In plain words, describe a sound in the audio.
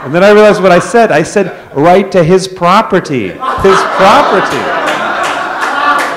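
A man laughs through a microphone.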